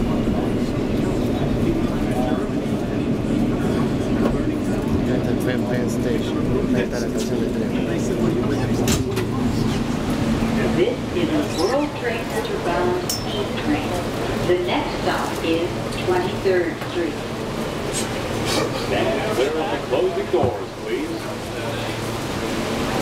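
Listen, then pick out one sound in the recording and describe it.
A subway train rumbles and clatters steadily along the tracks.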